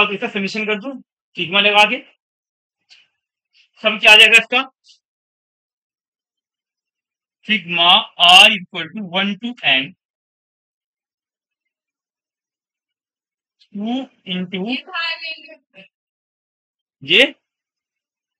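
A young man lectures calmly in short bursts.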